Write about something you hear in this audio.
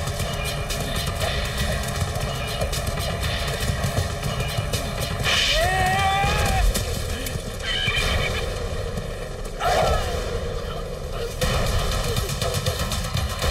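Horse hooves gallop and thud over the ground.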